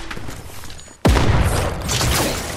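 A video game bow twangs as an arrow is loosed.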